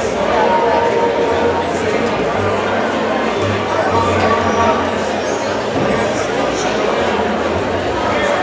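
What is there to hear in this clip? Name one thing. A band plays on stage, heard through loudspeakers in a large hall.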